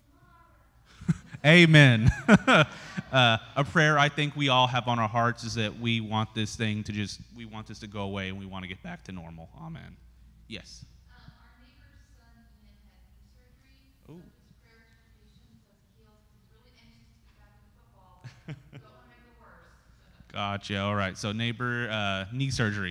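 A man speaks with animation into a microphone, heard through loudspeakers in an echoing hall.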